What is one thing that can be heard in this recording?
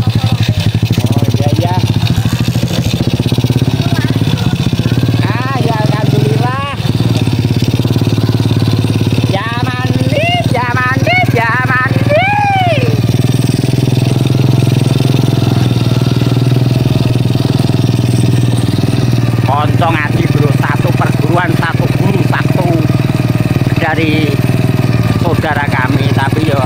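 A motorbike engine hums steadily throughout.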